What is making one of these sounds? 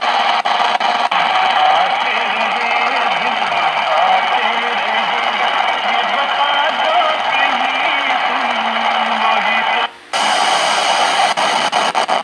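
Radio buttons click as they are pressed.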